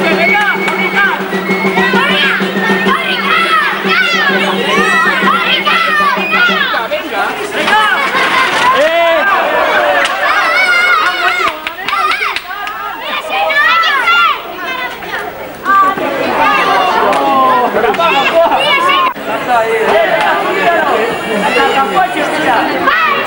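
Young children shout and chatter excitedly close by.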